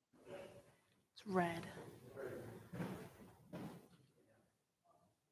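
A woman speaks calmly through a microphone in a large echoing room.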